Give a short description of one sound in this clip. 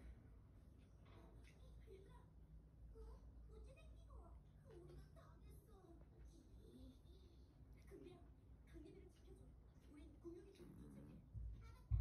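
A woman talks softly nearby.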